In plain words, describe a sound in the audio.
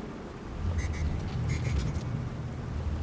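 A magical device gives off a few bright, tinkling chimes.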